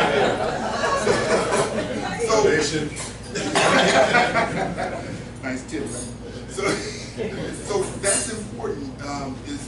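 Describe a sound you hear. A man speaks steadily in a room with a slight echo.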